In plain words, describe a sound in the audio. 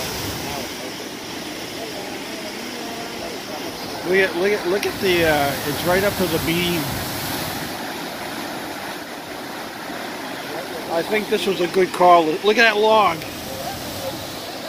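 Fast floodwater rushes and churns steadily.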